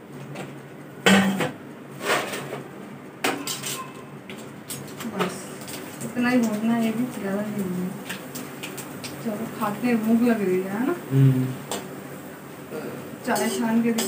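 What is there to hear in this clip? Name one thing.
Metal utensils clink and scrape against a pan.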